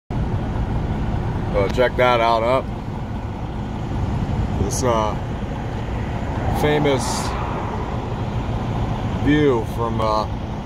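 A vehicle engine rumbles low and steady from inside the cab.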